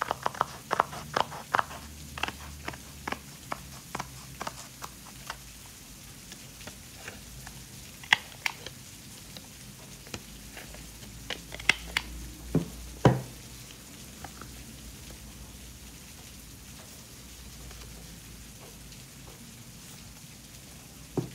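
Stiff paper rustles and taps as it is handled.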